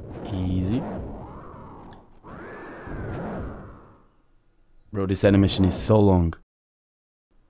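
A large beast roars and growls.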